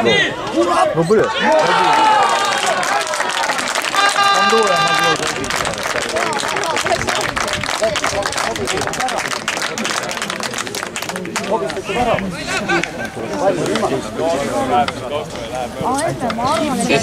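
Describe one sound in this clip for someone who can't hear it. Young men shout to each other outdoors across a sports field.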